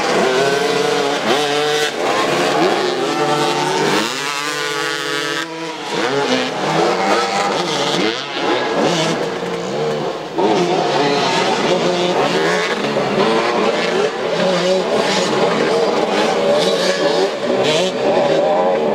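Motorcycle engines rev and whine loudly, rising and falling.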